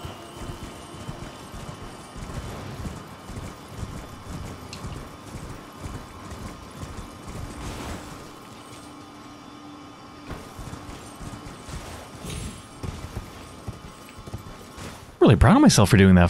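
Hooves thud steadily on soft ground as a horse gallops.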